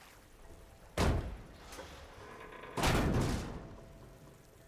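A heavy metal door scrapes and clangs as it is pried open.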